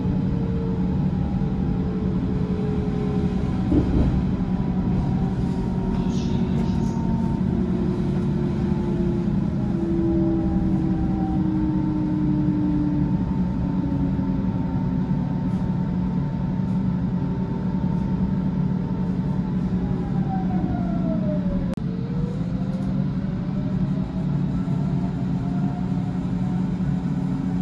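A train's electric motor whines, its pitch slowly sliding.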